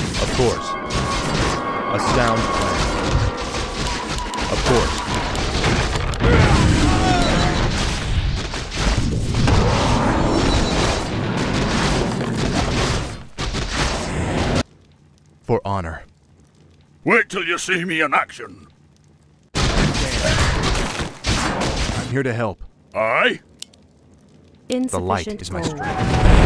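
Magic spells crackle and blast amid a fantasy battle.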